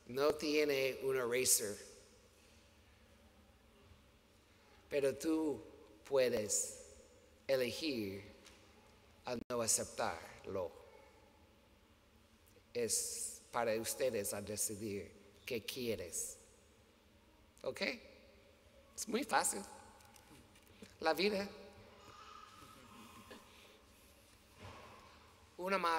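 A middle-aged man speaks calmly into a microphone, with pauses, in a reverberant hall.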